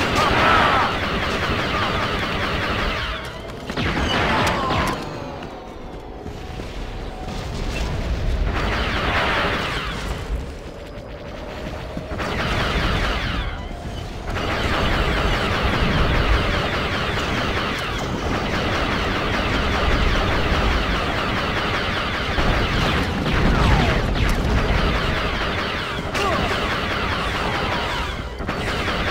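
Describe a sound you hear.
Laser rifles fire in rapid bursts.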